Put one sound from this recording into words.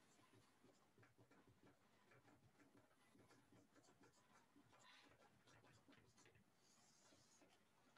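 A marker squeaks faintly on a whiteboard.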